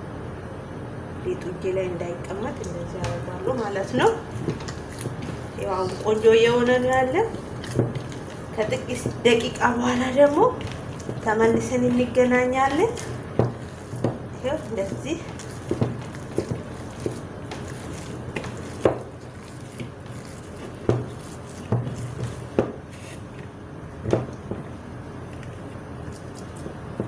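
Hands knead and squelch soft dough in a bowl.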